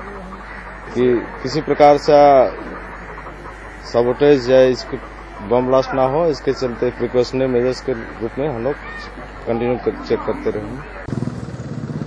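A middle-aged man speaks calmly and close by, into a microphone.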